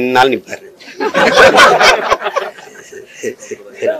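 Several men laugh together nearby.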